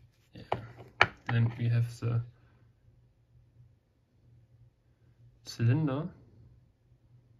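Small metal lock parts click softly against each other.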